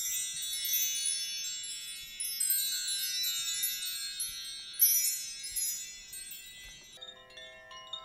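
Wind chimes tinkle brightly close by, then ring out.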